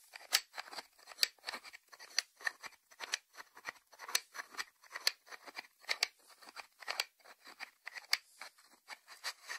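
Fingernails tap on a ceramic lid.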